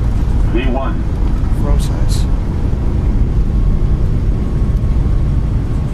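Tyres rumble on a runway.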